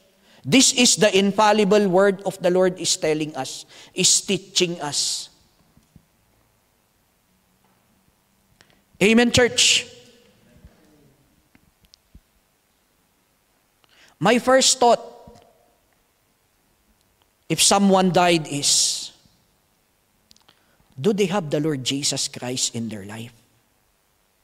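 A man speaks with animation into a microphone, in bursts with pauses, in a slightly echoing room.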